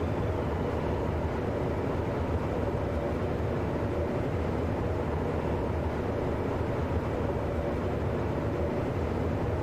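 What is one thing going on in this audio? A train's wheels clatter over the rails.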